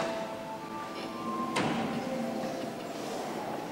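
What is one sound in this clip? A man sings out in a large echoing hall.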